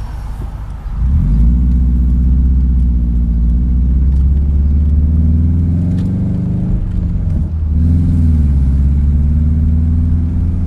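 A car engine hums and revs as the car pulls away and drives down a street.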